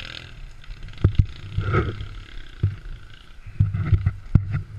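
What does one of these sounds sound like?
Stones clatter and knock as a dirt bike tumbles onto the rocks.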